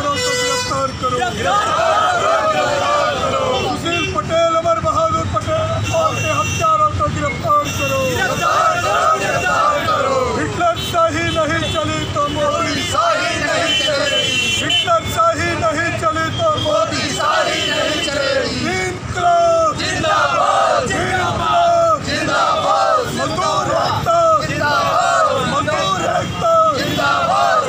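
A crowd of men chant slogans loudly together outdoors.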